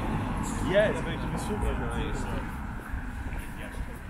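A car drives off down a street.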